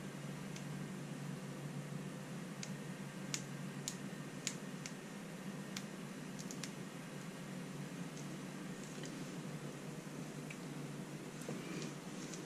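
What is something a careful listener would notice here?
Paper crinkles softly between fingers.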